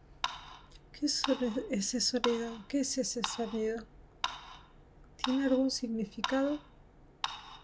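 A woman speaks calmly into a microphone, close by.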